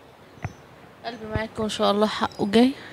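A woman speaks into a nearby microphone.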